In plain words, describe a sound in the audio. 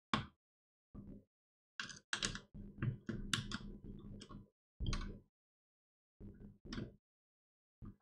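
Small plastic parts click and scrape as hands fit a fan cable.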